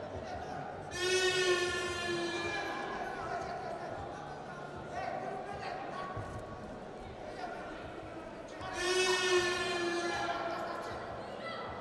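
Spectators shout loudly in short bursts.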